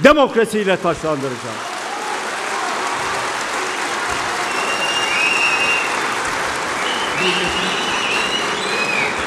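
A crowd applauds steadily.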